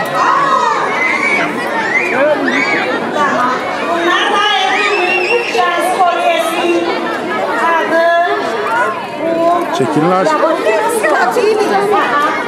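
A crowd of men and women chatters loudly nearby.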